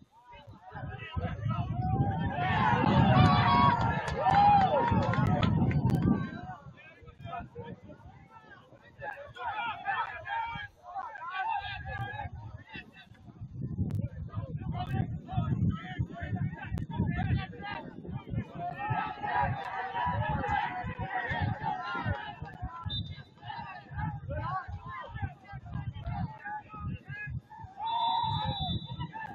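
A crowd of spectators cheers and shouts in the open air.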